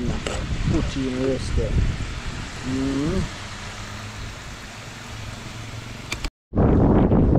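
Hot oil sizzles steadily as potatoes fry.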